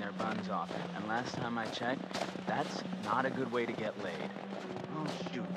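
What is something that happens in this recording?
A young man speaks with animation, heard close.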